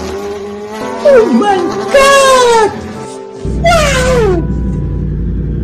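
A man laughs loudly and wildly.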